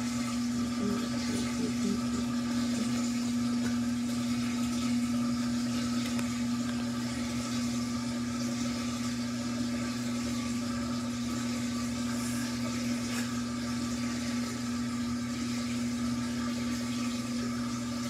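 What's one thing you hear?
Wet laundry sloshes and swishes inside a washing machine drum.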